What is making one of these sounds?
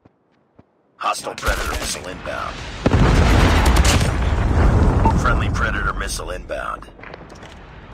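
A rifle fires in fast, loud bursts.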